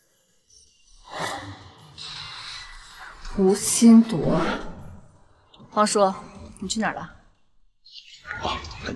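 A young woman asks sharply, close by.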